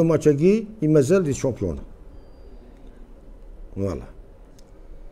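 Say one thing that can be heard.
An older man speaks calmly and close into a microphone.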